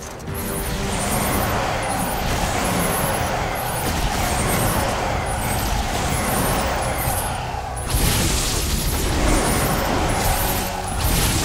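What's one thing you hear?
Blades whoosh and slash through the air over and over.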